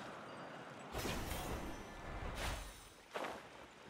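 A magical burst whooshes and crackles loudly.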